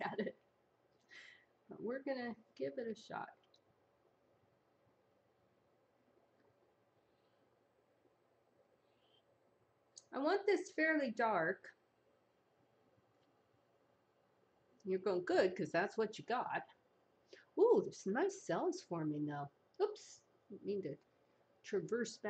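A woman talks calmly into a microphone, in short bursts.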